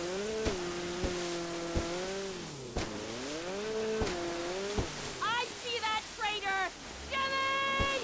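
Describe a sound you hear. Water sprays and splashes under a jet ski.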